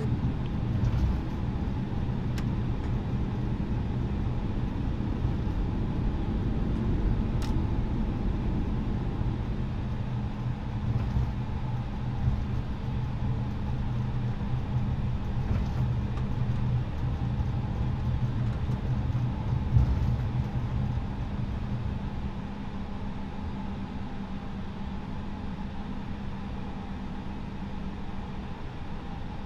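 A jet airliner's engines hum steadily as it taxis.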